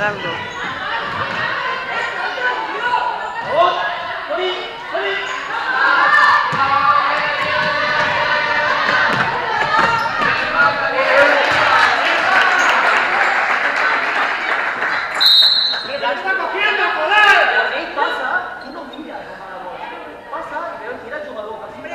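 Children and adults chatter and shout in a large echoing hall.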